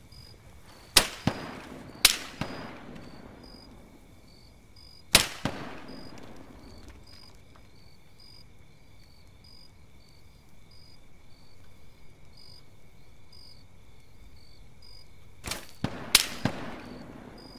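An assault rifle fires single shots that echo outdoors.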